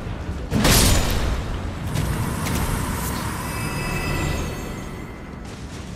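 A sword clashes with a ringing metallic hit.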